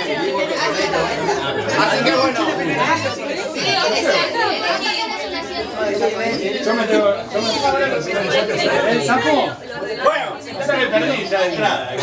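Several young men and women chatter and talk over one another nearby.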